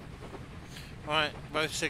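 A man speaks briefly through a headset microphone.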